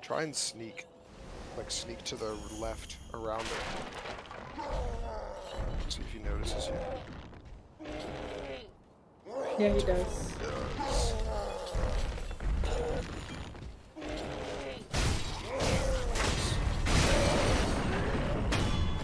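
A young man talks with animation through a close microphone.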